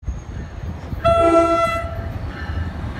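A train horn blasts loudly.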